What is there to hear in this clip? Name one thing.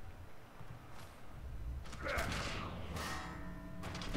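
A heavy blow lands with a thud as a player is knocked down.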